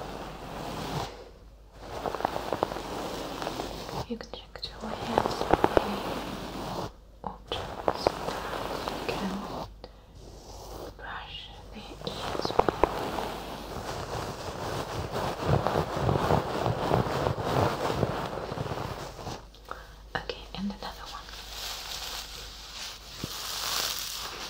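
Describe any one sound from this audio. A young woman whispers softly, close to a microphone.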